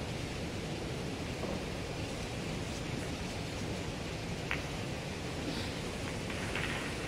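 A cue tip is chalked with a soft scraping.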